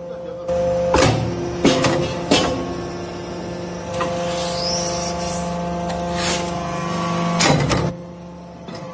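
A heavy press ram thuds and clanks as it compresses material.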